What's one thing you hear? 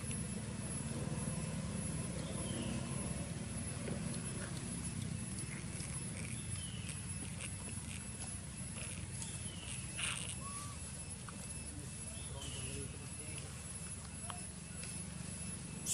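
A monkey chews food close by.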